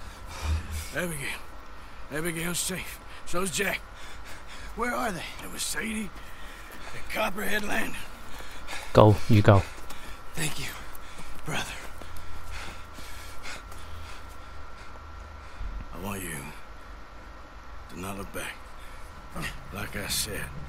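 A man speaks in a low, gruff voice close by.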